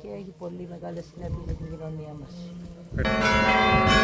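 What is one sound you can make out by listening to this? An elderly woman speaks calmly, close to the microphone.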